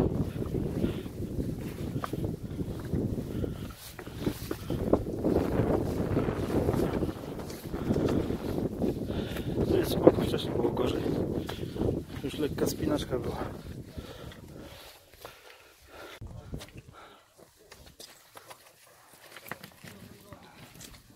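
Boots crunch and scrape on loose rocks with each step.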